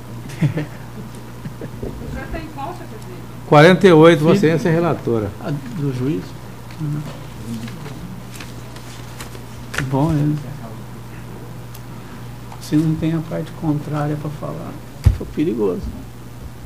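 A speaker talks into a microphone in short phrases with pauses, heard through loudspeakers in a large room.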